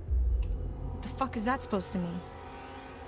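A woman asks sharply.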